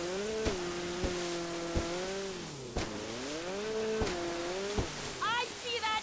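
A jet ski engine drones and revs.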